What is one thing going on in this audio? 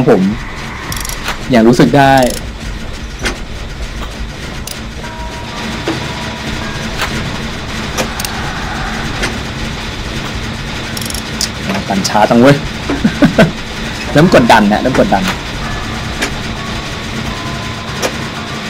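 Metal parts click and rattle as a machine is worked on by hand.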